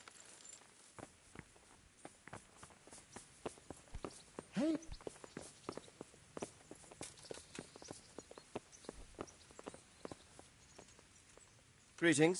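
Footsteps thud on wooden stairs and boards.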